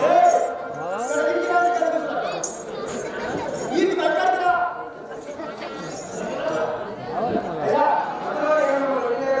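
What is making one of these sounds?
A man sings loudly through a microphone, heard over loudspeakers.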